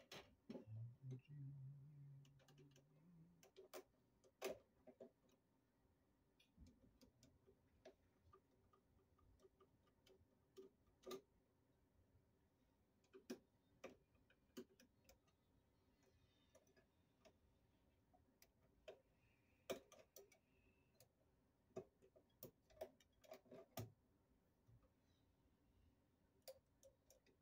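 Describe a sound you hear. A metal tool clicks and scrapes against a metal box.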